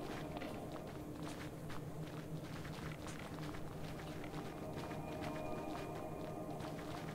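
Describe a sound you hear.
Light footsteps patter steadily on soft sand.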